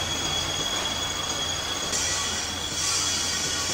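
Metal grinds and scrapes as a cutting tool shaves the spinning shaft.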